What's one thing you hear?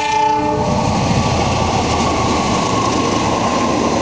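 A diesel engine drones loudly as a locomotive passes.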